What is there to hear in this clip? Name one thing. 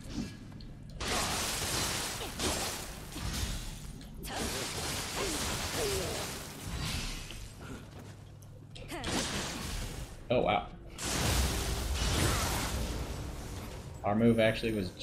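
Swords clash and slash in a fast fight.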